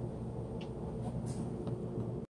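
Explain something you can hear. A phone rubs and knocks against a hand.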